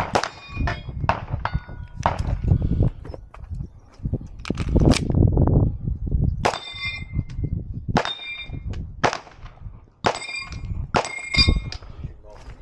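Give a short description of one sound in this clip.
Steel targets ring out when struck by bullets.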